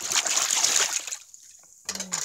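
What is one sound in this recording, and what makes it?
Water splashes as a hand stirs it in a tub.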